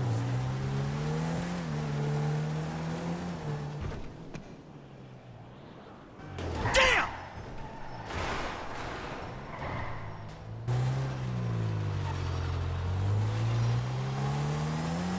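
A car engine idles with a deep rumble and revs up and down.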